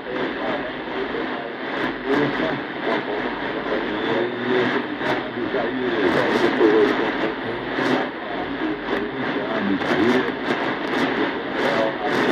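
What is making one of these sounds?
A shortwave radio plays a faint, crackly broadcast through its speaker, with static and hiss.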